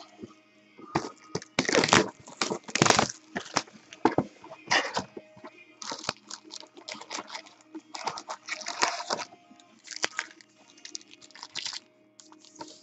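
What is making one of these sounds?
Cardboard rustles and scrapes as a box is handled and opened.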